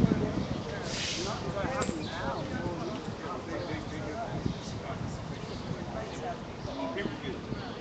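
A large box truck rolls slowly by.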